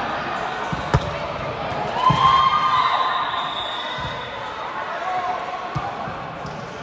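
A volleyball is struck with a sharp slap in an echoing gym.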